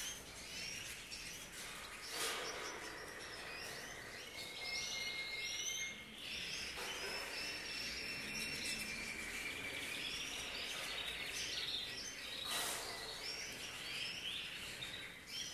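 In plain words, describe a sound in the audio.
A wire cage rattles and clinks as it is handled.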